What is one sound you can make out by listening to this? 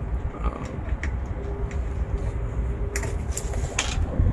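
A metal hook clicks against a fitting.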